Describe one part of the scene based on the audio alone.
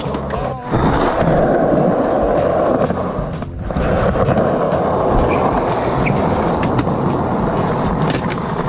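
Skateboard wheels roll and rumble loudly over concrete.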